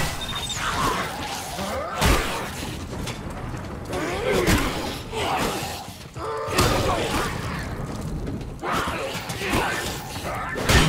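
A monster snarls and shrieks.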